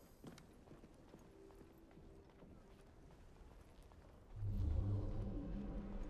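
Footsteps creak softly across a wooden floor.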